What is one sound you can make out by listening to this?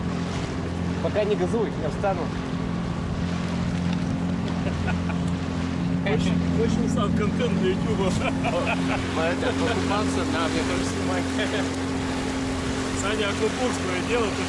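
A man talks loudly over the engine.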